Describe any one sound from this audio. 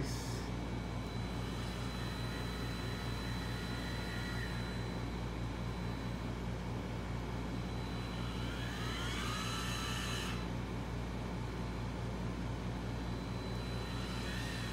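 A small electric motor hums steadily, with a low buzz.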